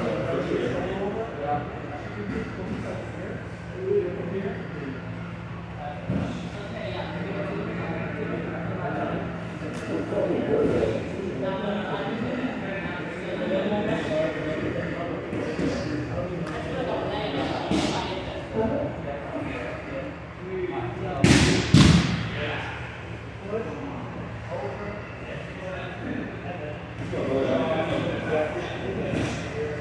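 Men talk and call out in a slightly echoing room.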